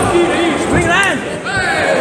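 A kick thuds against a fighter's body.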